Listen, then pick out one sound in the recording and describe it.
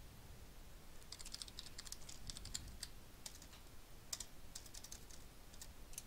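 Computer keys click quickly as someone types.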